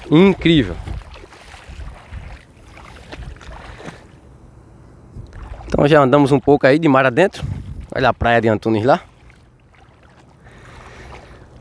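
Wind blows steadily outdoors over open water.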